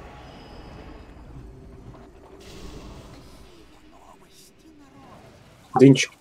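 Fantasy battle sound effects of spells and blows clash in a game.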